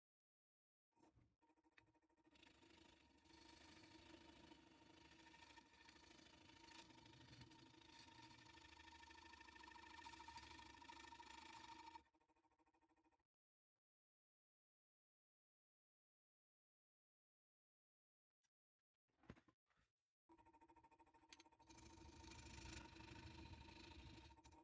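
A lathe motor hums steadily as wood spins.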